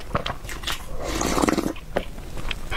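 A young woman slurps loudly from a bowl close to a microphone.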